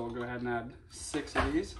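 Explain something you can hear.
A man speaks briefly, close by.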